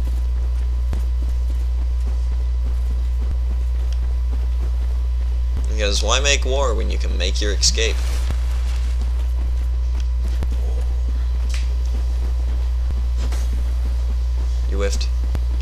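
Footsteps tread softly through grass.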